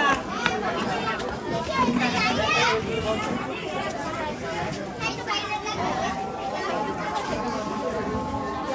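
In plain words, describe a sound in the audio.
Children and adults chatter and call out nearby outdoors.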